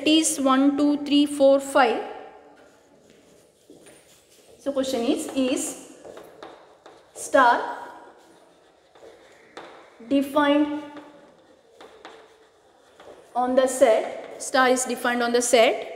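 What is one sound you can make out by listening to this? A woman speaks clearly and slowly in a room with a slight echo.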